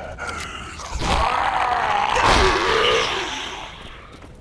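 A creature groans in pain.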